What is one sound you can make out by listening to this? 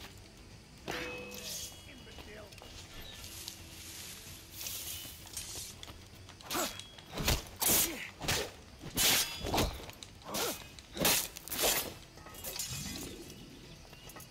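Footsteps crunch over stones and grass.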